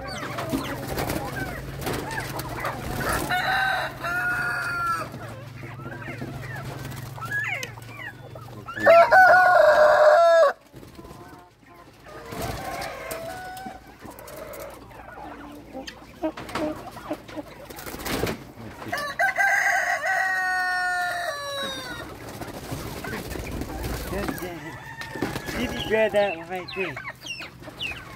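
Young chicks cheep and chirp close by.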